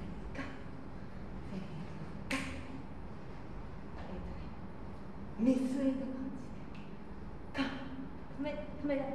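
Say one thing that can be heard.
A young woman speaks in short phrases nearby.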